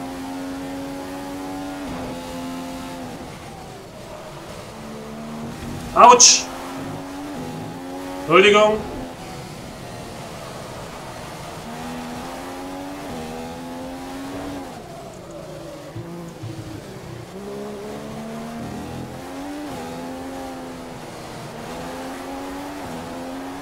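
A racing car engine whines, rising and falling in pitch as it shifts gears.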